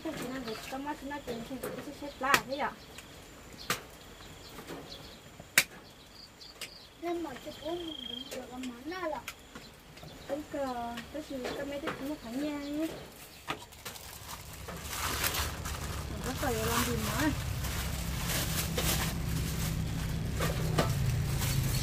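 Dishes clink and clatter as they are handled.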